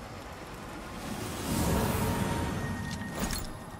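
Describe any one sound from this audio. A loud magical blast booms.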